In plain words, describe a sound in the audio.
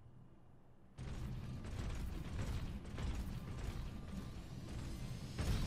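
Heavy metal footsteps clank on stone.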